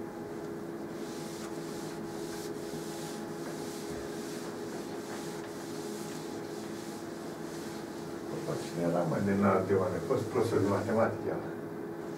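A sponge wipes across a chalkboard with a soft rubbing sound.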